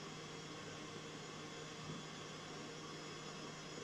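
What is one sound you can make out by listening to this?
A metal sieve taps softly as powder is sifted.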